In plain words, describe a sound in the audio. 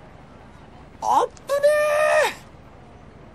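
A young man speaks with worry.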